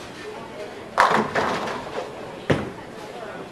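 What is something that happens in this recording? Bowling pins crash and clatter as the ball strikes them.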